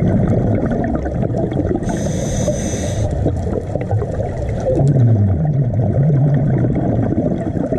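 Scuba bubbles gurgle and rumble close by underwater.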